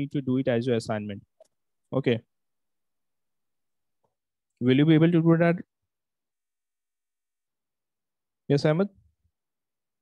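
A young man speaks calmly into a microphone in short bursts with pauses.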